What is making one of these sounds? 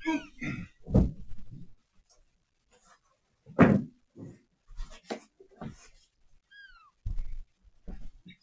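Footsteps thump on the floor.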